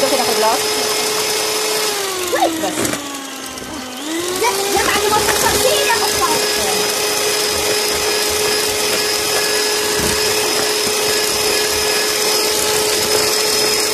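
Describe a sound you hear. An electric hand mixer whirs steadily, dipping in pitch briefly before speeding up again.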